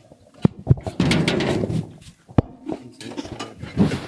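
A metal gate creaks and clanks open.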